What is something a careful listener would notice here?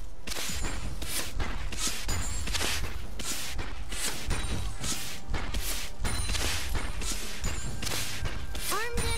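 Fantasy game attack and spell effects crackle and thud in quick bursts.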